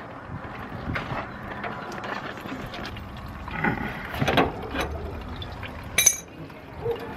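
A metal wrench clinks against a fitting.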